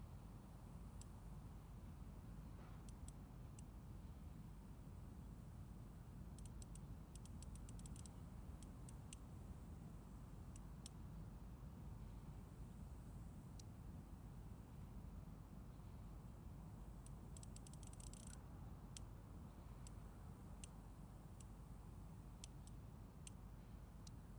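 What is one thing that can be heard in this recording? A safe's combination dial clicks softly as it turns.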